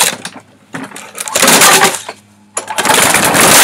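A man yanks a lawn mower's pull cord several times.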